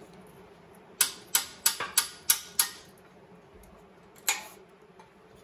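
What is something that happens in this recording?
A hammer strikes metal in quick, sharp blows.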